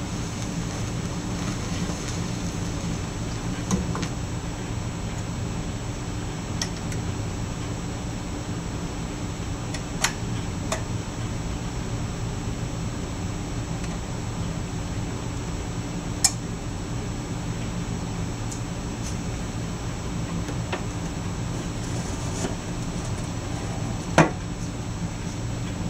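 A turntable hums steadily with a low rumble.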